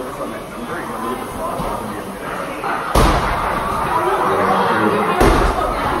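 Rowing machines whir as people row.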